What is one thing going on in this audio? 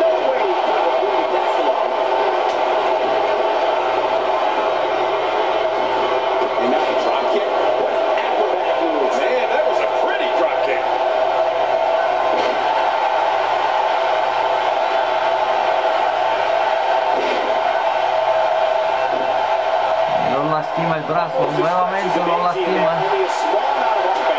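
A crowd cheers and roars steadily in a large arena.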